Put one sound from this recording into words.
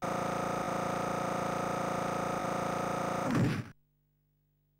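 Electronic video game music plays loudly, then cuts off.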